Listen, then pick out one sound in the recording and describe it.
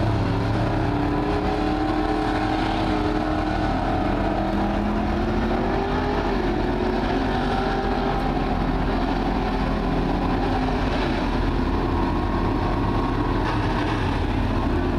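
Race car engines roar and drone loudly outdoors, rising and falling in pitch as the cars circle the track.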